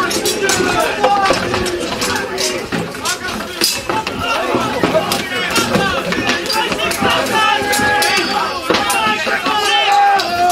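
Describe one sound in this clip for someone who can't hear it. A crowd of men shouts and yells loudly outdoors.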